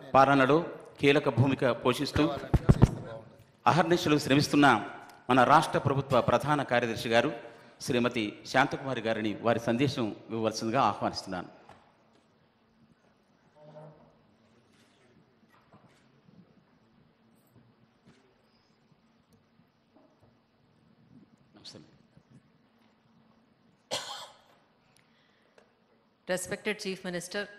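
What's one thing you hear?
A man speaks calmly over a loudspeaker in a large hall, with pauses.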